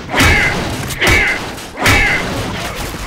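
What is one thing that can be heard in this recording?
A crowbar smashes a wooden crate with sharp cracks.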